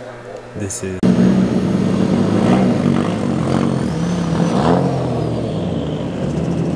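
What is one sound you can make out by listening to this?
A car engine revs loudly, rising and falling.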